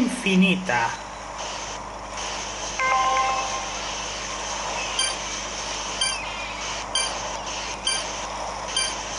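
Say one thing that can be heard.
Video game music plays from a television.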